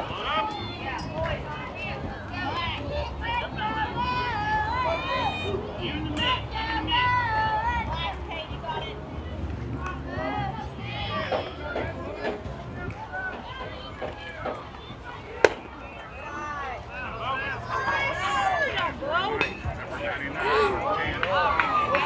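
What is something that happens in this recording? Young players shout and cheer from across an open field.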